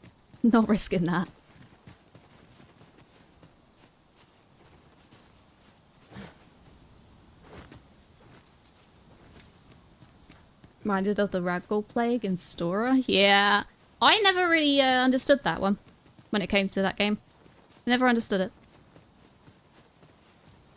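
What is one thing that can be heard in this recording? Footsteps crunch on grass and stone.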